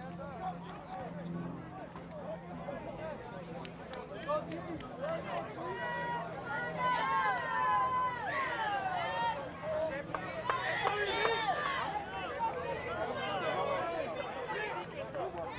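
A crowd of young men chatter and shout outdoors.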